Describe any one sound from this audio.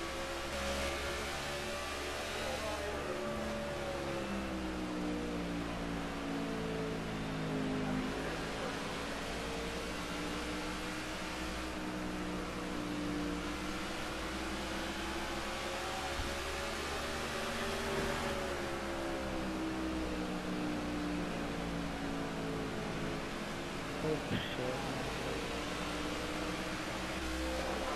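A race car engine roars steadily, its pitch rising and falling with speed.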